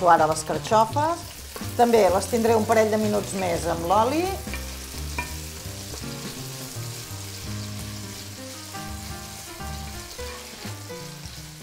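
A wooden spoon scrapes and stirs food in a pan.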